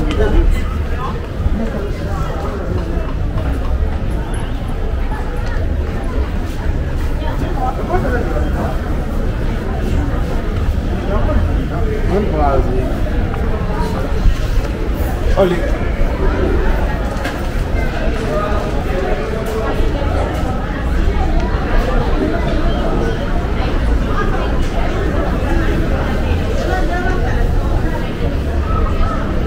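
A crowd of men and women murmurs and chatters nearby outdoors.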